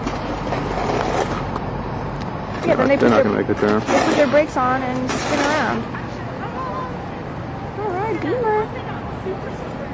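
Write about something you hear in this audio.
A car's tyres crunch and slide over snow.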